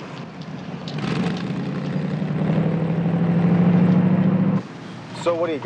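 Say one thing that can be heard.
A car engine hums and swells as a car passes.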